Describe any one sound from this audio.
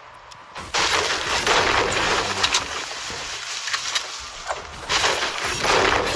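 A pickaxe chops repeatedly into a tree.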